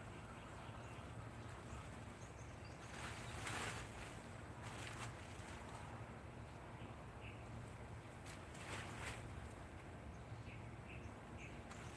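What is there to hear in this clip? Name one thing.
A plastic sheet rustles and crinkles as a man handles it.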